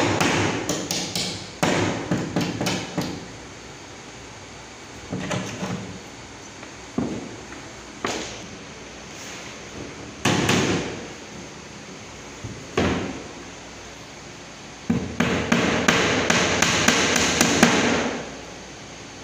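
A hammer taps rapidly on a hard board.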